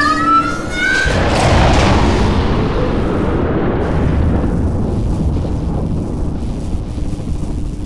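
A loud electrical burst crackles and roars, then slowly fades.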